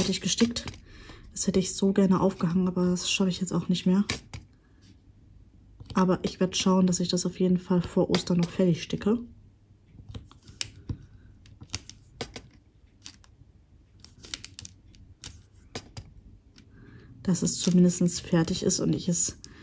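A plastic pen taps and clicks softly as tiny gems are picked up and pressed down.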